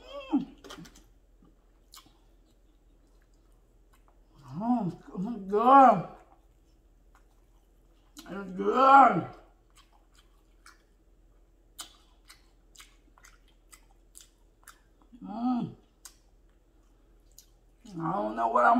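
A woman chews food with soft smacking sounds.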